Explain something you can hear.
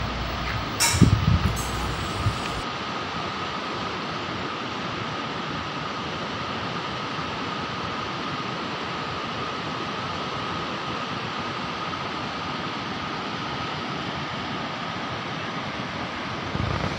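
A river rushes loudly over rocks in a steady roar.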